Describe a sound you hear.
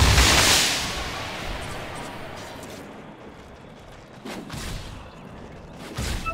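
Magical spell effects whoosh and crackle in bursts.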